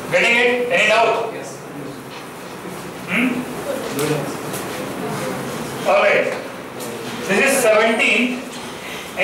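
A man speaks calmly and clearly through a headset microphone.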